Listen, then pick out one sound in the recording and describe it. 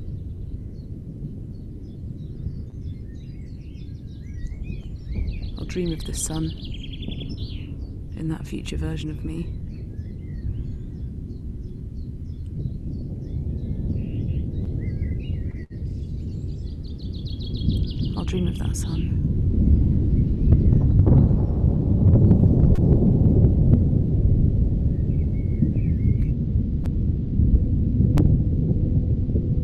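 A microphone rumbles as it is handled close to a mouth.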